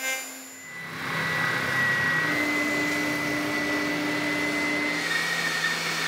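A spindle sander hums while sanding wood.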